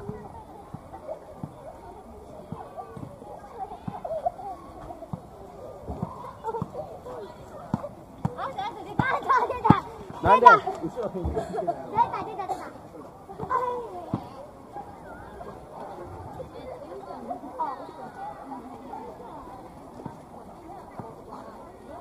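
Voices of people chatter in the distance outdoors.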